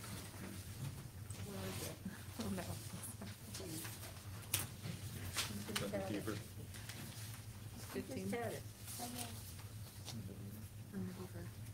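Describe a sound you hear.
A woman at a table speaks through a microphone.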